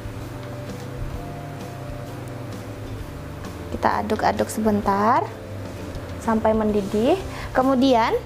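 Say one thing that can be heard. A spatula scrapes a pan.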